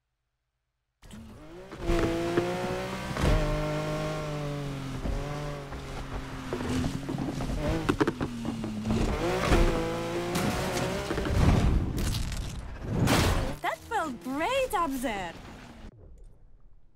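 A sports car engine roars and revs as the car speeds along.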